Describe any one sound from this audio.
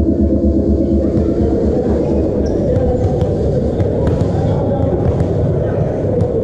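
A volleyball is struck by hands, echoing in a large hall.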